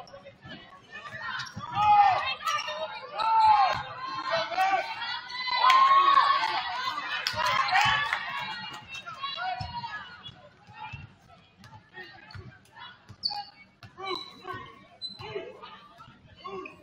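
A basketball thumps as it is dribbled on a wooden floor.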